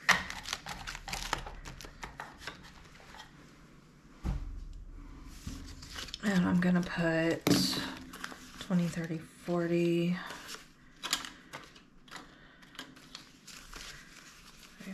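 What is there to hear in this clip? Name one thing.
Paper bills rustle and crinkle as they are handled.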